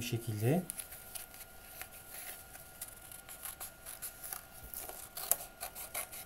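Paper rustles and crinkles as a hand handles it.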